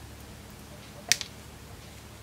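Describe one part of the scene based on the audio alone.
Small wire cutters snip through a thin wire with a sharp click.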